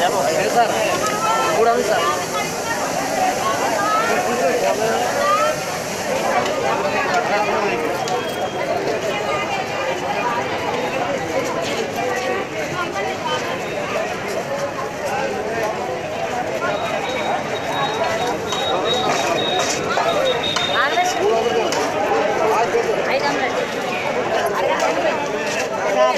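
A crowd of men and women chatter loudly all around.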